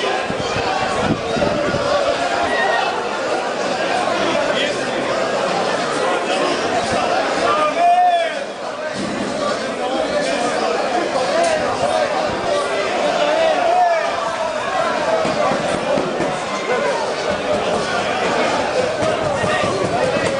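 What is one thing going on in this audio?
A large outdoor crowd of men and women chatters and shouts.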